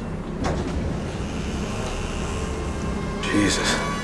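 A heavy door is pushed open with a creak.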